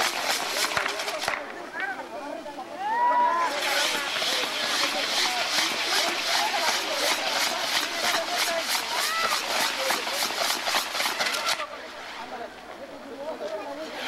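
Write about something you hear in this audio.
A crowd of people shout and cheer outdoors.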